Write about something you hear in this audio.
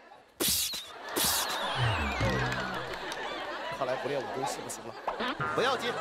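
A studio audience laughs.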